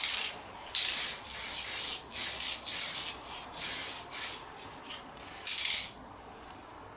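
An aerosol can sprays in short hissing bursts.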